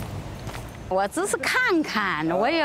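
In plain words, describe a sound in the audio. An older woman speaks animatedly and laughs close by.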